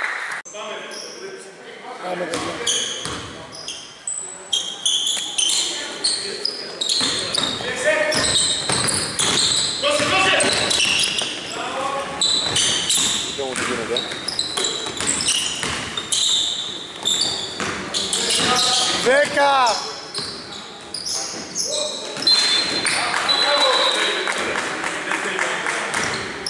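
Men shout and call out to each other across the hall.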